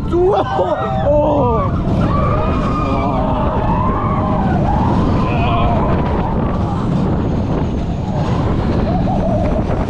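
A roller coaster rumbles and rattles along its track.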